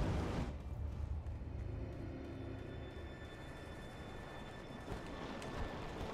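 Footsteps run over rocky ground.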